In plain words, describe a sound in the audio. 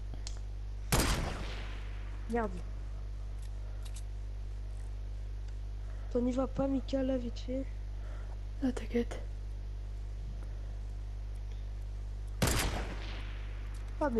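A rifle fires a loud shot that rings and fades away.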